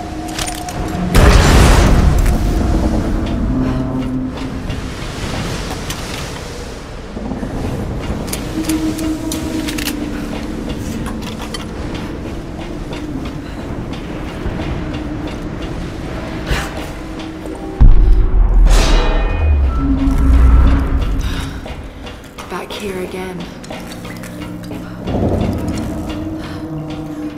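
Footsteps clang on a metal deck.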